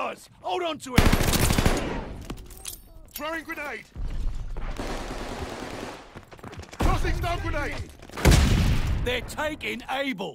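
A submachine gun fires in loud rapid bursts.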